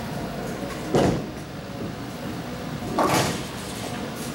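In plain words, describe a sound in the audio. A bowling ball rumbles as it rolls down a lane.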